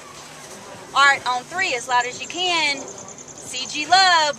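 A group of young women shout and cheer together close by, outdoors.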